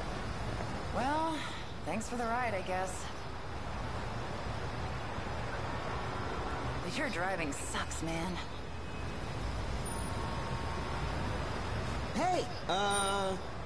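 A young woman speaks casually and close by.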